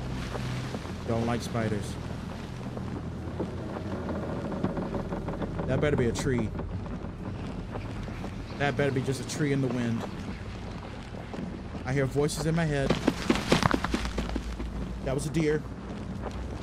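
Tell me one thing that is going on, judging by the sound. A young man talks into a close microphone, calmly and then with growing animation.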